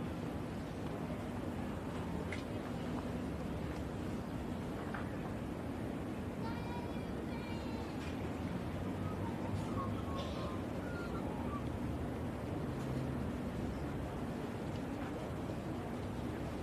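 A crowd of spectators murmurs softly outdoors.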